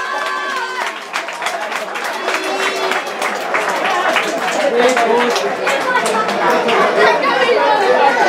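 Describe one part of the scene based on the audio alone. Men shout and cheer excitedly outdoors.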